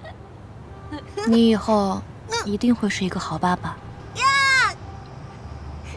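A young woman speaks softly and warmly nearby.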